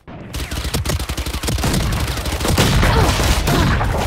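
Rapid gunfire cracks at close range.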